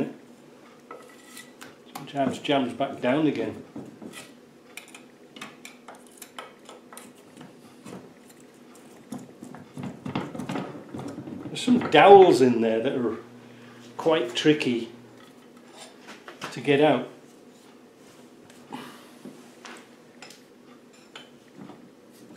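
Metal parts click and clink as a man handles them.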